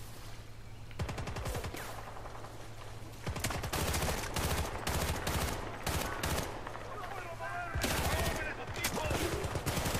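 Rapid gunshots crack and echo in bursts.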